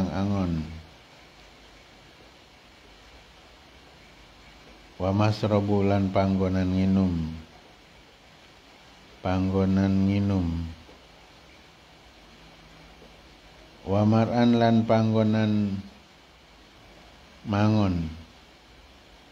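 A man chants from a text close by, in long sustained phrases with pauses between them.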